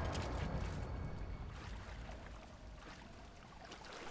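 Water splashes as someone swims.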